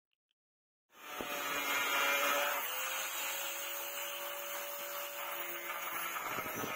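An angle grinder whines steadily as it cuts through a metal rod.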